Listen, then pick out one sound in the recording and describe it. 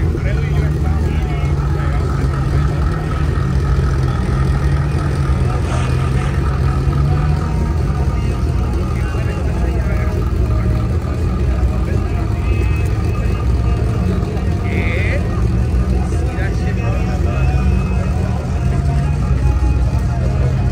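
An engine idles with a deep, steady rumble close by.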